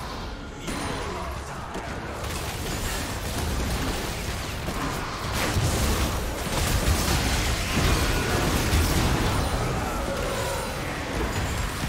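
Game spells whoosh and crash in a busy fight.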